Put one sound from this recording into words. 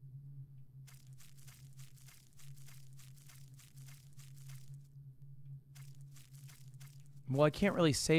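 Footsteps tap quickly in a game.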